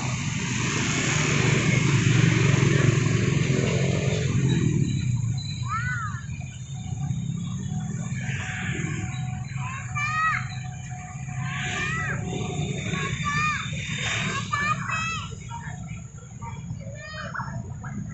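A passenger train rumbles along the tracks nearby and slowly moves away.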